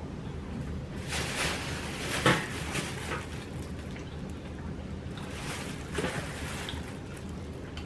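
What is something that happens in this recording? A plastic shopping bag rustles and crinkles.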